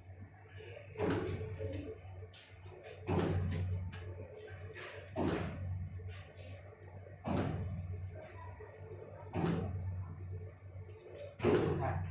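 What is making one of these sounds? Wooden steamer baskets knock together as they are stacked, every couple of seconds.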